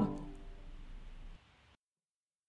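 A piano plays softly and fades out.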